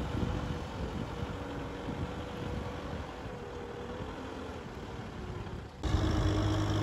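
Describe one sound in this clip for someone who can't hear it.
A tractor engine rumbles steadily in the distance.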